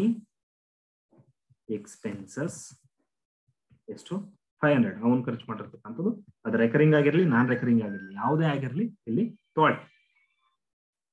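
A man speaks calmly through a microphone, as if explaining.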